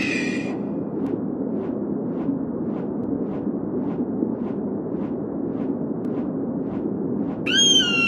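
An eagle's wings beat in steady flaps.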